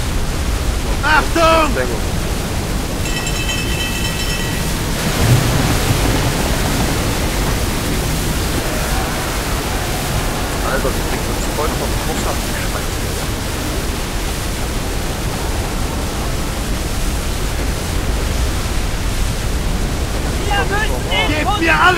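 Strong wind roars steadily in a storm.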